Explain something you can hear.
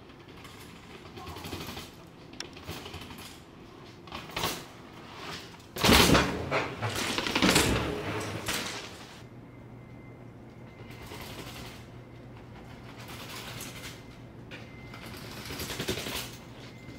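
Bicycle tyres roll and clatter down concrete steps.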